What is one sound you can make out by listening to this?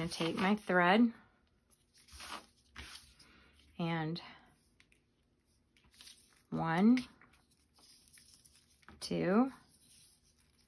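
Tape is pulled from a small dispenser.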